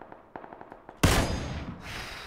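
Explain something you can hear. A rifle shot cracks loudly.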